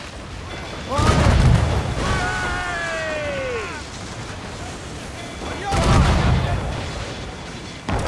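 Cannons fire in loud booming blasts.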